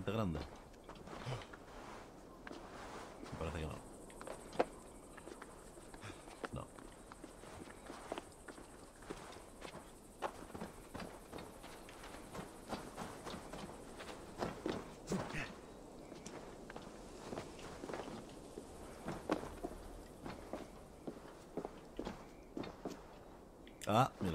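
Footsteps and scrapes of climbing sound in quick, short bursts.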